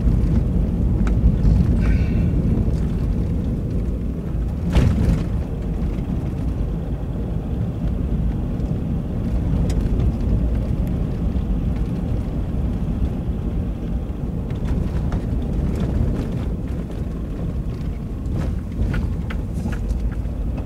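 A car engine rumbles low and steady as the car drives along.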